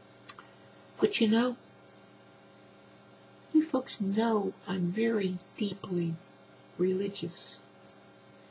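An older woman speaks slowly and calmly into a microphone, with long pauses.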